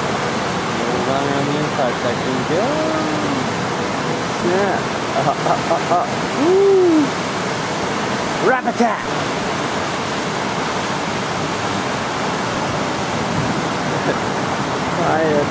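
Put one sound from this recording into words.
Waves break and rush with a steady roar.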